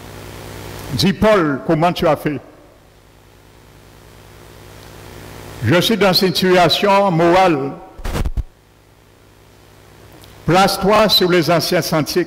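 A middle-aged man speaks with animation through a headset microphone and loudspeakers, in bursts with pauses.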